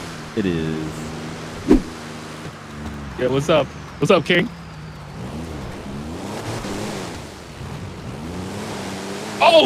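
A car engine hums and revs as the car drives.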